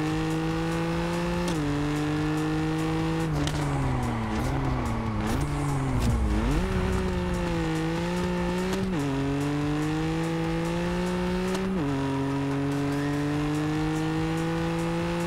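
A sports car engine roars, rising in pitch and dropping sharply at each gear change.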